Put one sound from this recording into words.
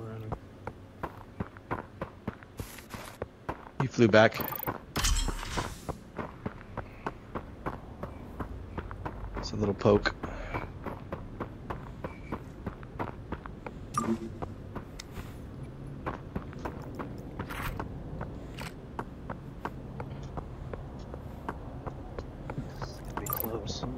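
Quick footsteps tap steadily on a hard floor.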